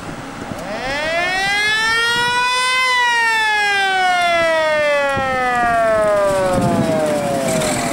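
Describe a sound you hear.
A fire engine's motor rumbles as it drives past.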